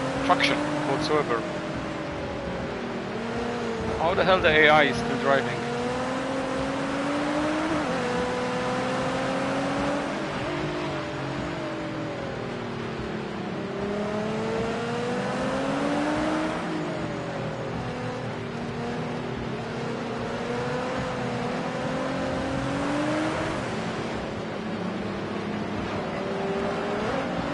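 A car engine revs up and down as gears shift.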